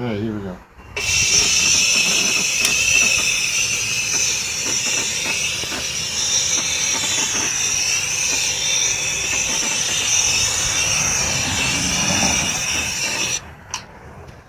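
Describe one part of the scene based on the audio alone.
A heat gun blows with a steady, loud hissing roar.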